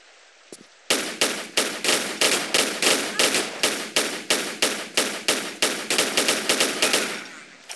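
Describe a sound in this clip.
Pistols fire a rapid string of shots.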